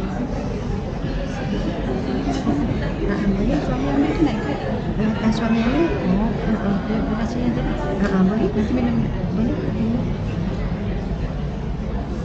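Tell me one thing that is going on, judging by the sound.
Women talk quietly nearby.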